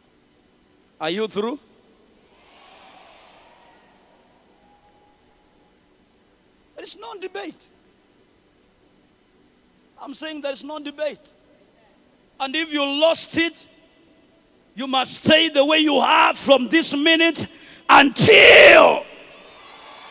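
A young man preaches with animation through a microphone and loudspeakers, pausing between phrases.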